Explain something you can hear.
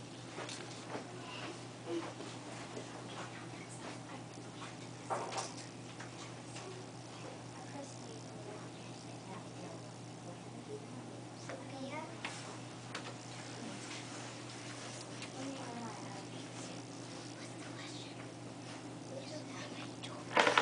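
Young children talk and call out quietly.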